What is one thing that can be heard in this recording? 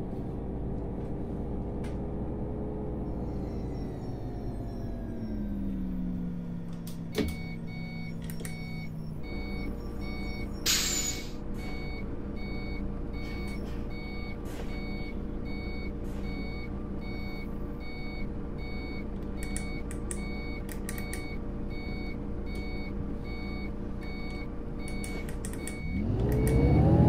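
A bus engine hums steadily as the bus slows to a stop.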